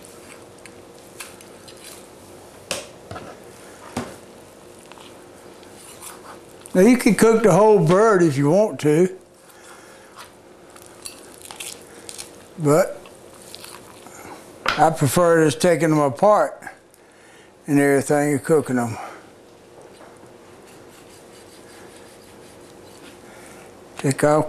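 A knife cuts through meat on a board.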